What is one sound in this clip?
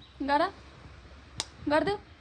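A young woman makes a kissing sound.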